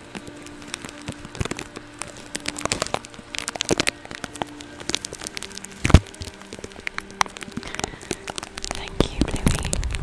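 A woman whispers softly and very close to a microphone.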